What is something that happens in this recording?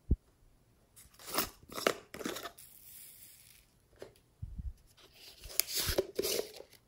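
Foam beads rustle and crackle as they are poured from a plastic container.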